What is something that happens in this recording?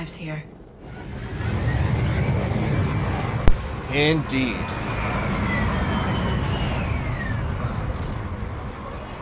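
A shuttle's engines roar as it hovers and lands.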